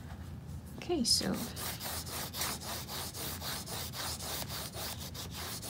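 A hand rubs quickly across paper.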